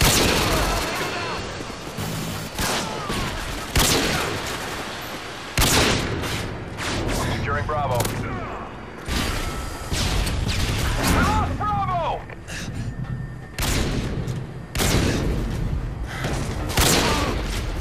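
Loud rifle shots bang with echoing cracks, one at a time.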